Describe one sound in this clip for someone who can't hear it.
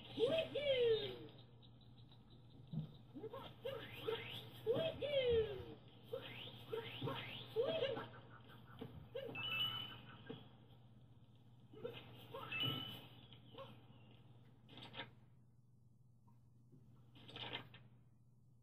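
Playful chirping game sounds play from a television speaker.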